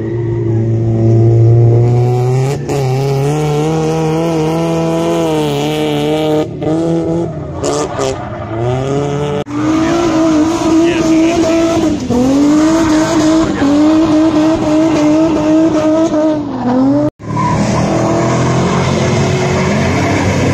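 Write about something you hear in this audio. Tyres squeal on asphalt as a car slides through a turn.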